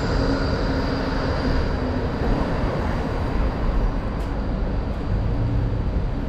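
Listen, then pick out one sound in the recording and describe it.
A van passes by.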